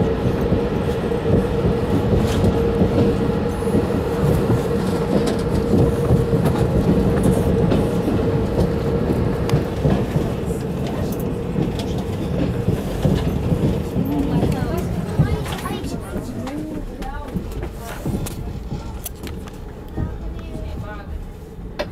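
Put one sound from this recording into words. A train rumbles steadily along the rails, growing quieter toward the end.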